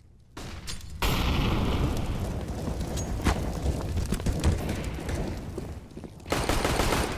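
Fire roars and crackles loudly nearby.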